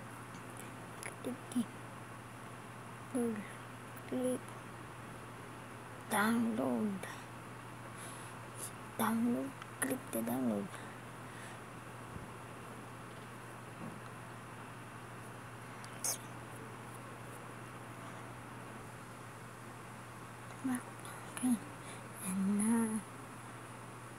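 A young boy speaks softly and haltingly, close to a microphone.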